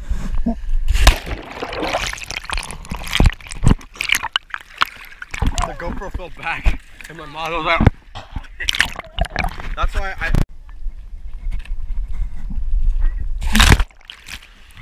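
A person plunges into a pool with a loud splash.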